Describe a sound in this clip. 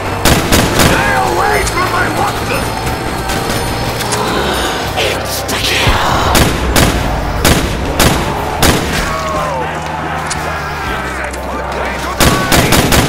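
Zombies growl and groan nearby.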